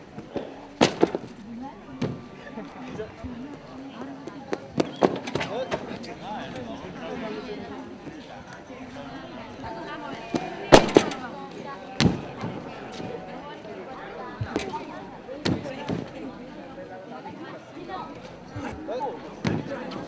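A gymnast lands with a heavy thud on a mat.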